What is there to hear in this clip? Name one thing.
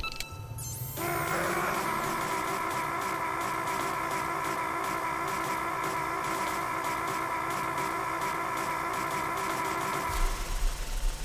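An electric machine buzzes steadily with a loud hum.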